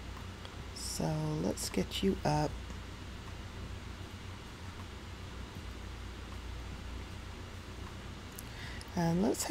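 A young woman speaks briefly and casually into a close microphone.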